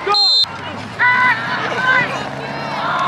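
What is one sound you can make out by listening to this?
A referee blows short, sharp whistle blasts.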